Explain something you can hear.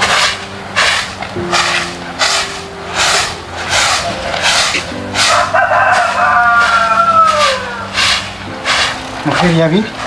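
A broom sweeps with quick, regular strokes.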